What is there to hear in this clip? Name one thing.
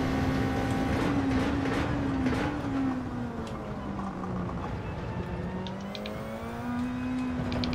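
A racing car engine drops in pitch as the car brakes and gears shift down, then climbs again.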